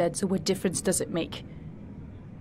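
A woman speaks softly and sadly, close by.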